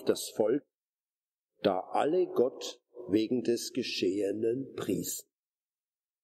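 A middle-aged man reads aloud calmly and clearly, close by.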